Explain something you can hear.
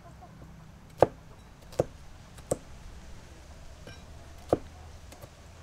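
A knife chops through pepper onto a board in sharp knocks.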